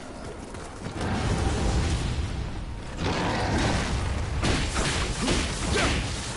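A monster roars loudly.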